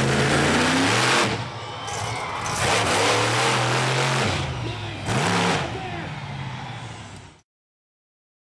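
A monster truck engine roars loudly, revving up and down.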